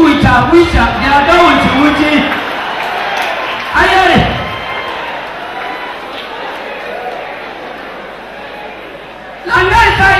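A man speaks with animation through a microphone in a large echoing hall.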